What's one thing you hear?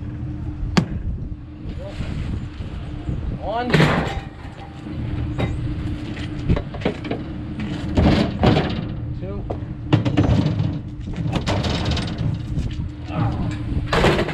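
Metal clanks and bangs sharply as a man wrenches at a refrigerator.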